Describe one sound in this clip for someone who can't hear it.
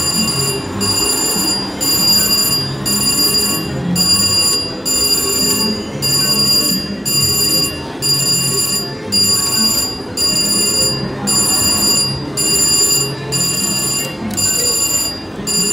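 A slot machine's reels spin and stop over and over.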